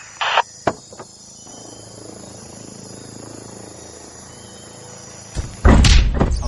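A helicopter's rotor thrums overhead.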